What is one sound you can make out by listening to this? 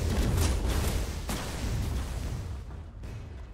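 Spells and weapons clash in a fantasy battle.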